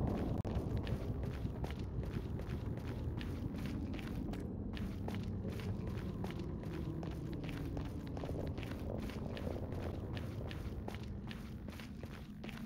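Footsteps crunch steadily on stone.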